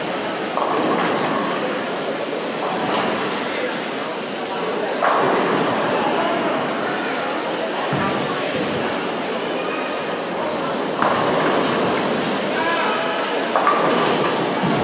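Men chatter and call out nearby in a noisy, echoing hall.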